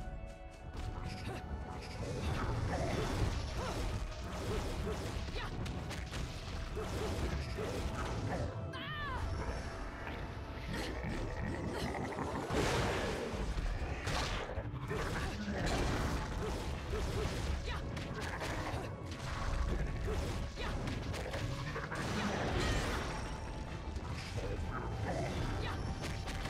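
Game weapons clash and strike heavily in fast combat.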